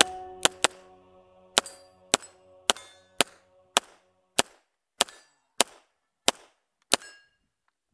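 A pistol fires shot after shot in quick succession outdoors.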